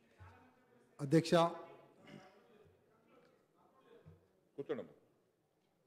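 A middle-aged man speaks firmly into a microphone.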